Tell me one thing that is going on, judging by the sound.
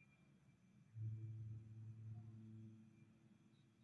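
A young man speaks quietly close to the microphone.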